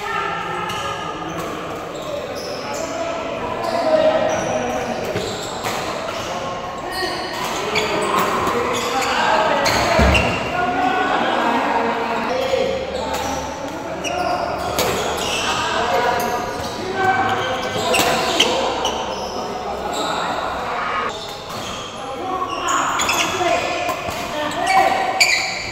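Rackets smack a shuttlecock back and forth in a rally.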